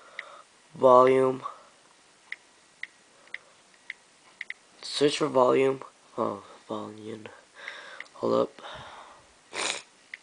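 A handheld device gives soft, quick clicks as a finger types on its keys.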